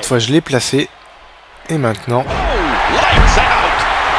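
A wrestler slams an opponent down onto the ring mat with a heavy thud.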